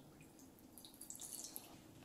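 Liquid pours and splashes into a glass bowl.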